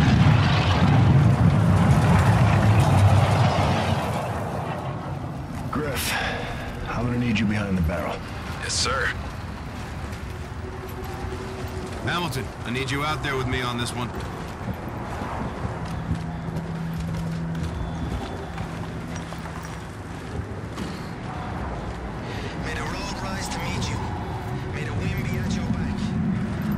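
A man talks casually, close to a microphone.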